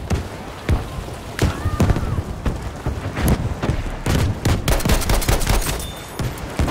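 A rifle fires loud, sharp shots again and again.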